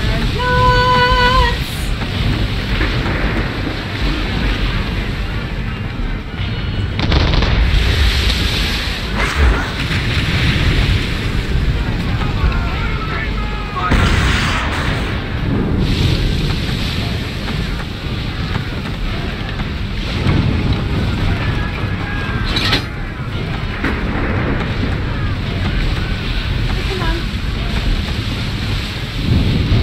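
Wind howls through a ship's rigging.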